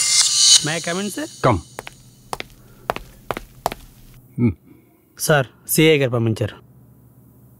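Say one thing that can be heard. A man talks on a phone.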